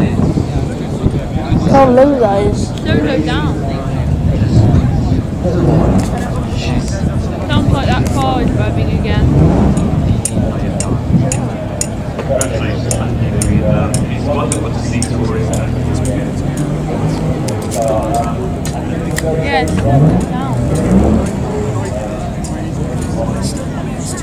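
A crowd chatters outdoors nearby.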